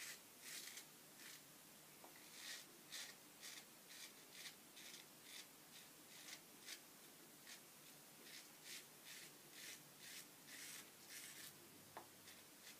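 A razor blade scrapes through stubble in short, quick strokes.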